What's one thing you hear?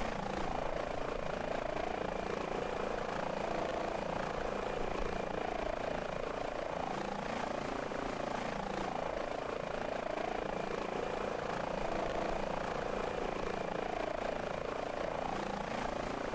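A helicopter rotor whirs steadily.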